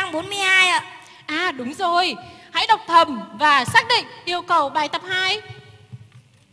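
A young woman speaks in a lively sing-song voice over a loudspeaker in a large hall.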